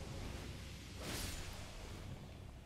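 A sudden rushing whoosh bursts and fades.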